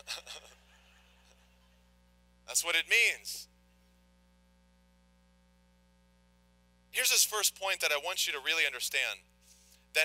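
A man speaks calmly into a microphone in an echoing room, with long pauses.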